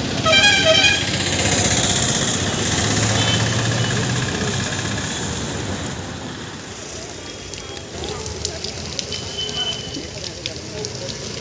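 Traffic drives past on a nearby road.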